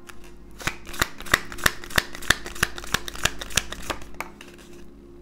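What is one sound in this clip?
Cards tap sharply on a table in a quick, even rhythm.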